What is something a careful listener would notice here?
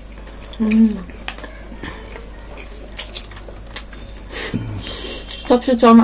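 A woman chews and slurps noodles close to a microphone.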